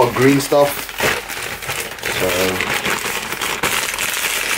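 A plastic mailer bag rustles and crinkles as it is handled.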